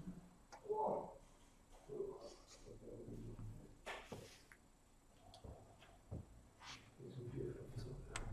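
Small plastic pieces click and slide on a soft mat.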